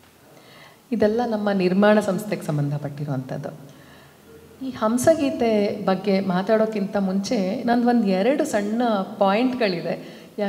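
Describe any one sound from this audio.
A woman speaks with animation into a microphone, heard through loudspeakers.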